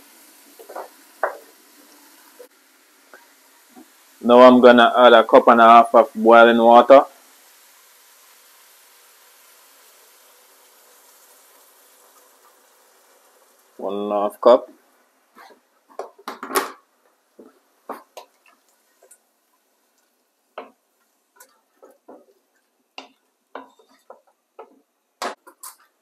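A wooden spoon stirs and knocks against a pot.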